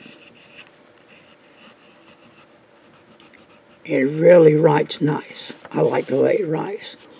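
A pen nib scratches softly on paper.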